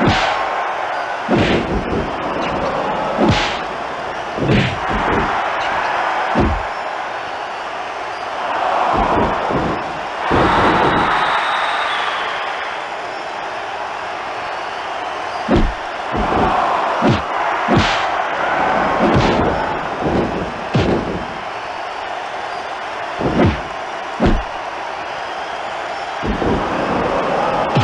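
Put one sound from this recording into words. Heavy punches and slams thud again and again.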